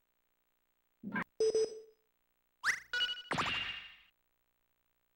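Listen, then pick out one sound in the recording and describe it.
Short electronic menu beeps and chimes sound.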